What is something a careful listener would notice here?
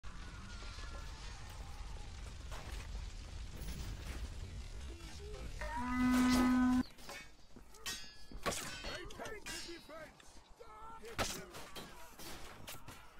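Swords clash and ring in a fight.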